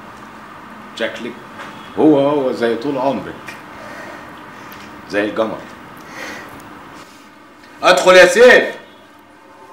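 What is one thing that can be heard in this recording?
A man speaks in short, calm phrases close by.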